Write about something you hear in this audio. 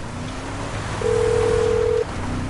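A phone rings with a steady electronic tone.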